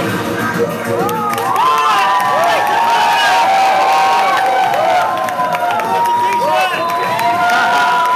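Young men whoop and cheer outdoors.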